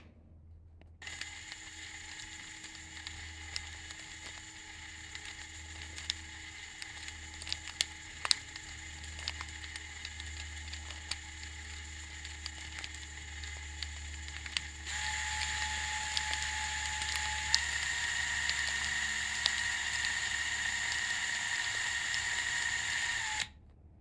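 A small motor whirs steadily.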